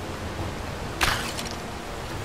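An arrow is loosed from a bow.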